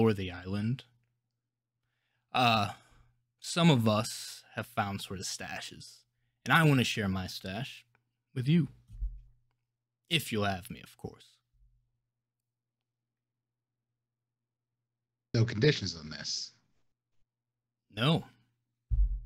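A young man talks with animation through a microphone, with pauses.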